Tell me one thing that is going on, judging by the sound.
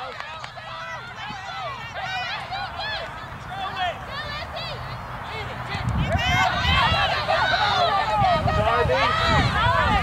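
Children and adults shout and cheer from afar across an open field.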